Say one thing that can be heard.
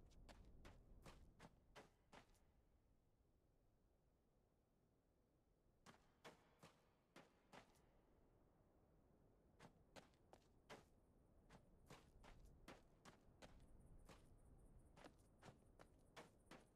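Footsteps crunch on rocky ground at a steady walking pace.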